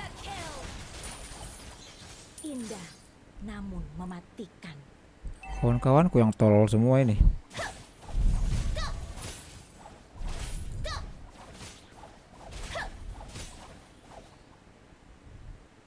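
Game sound effects of clashing blows and zaps play.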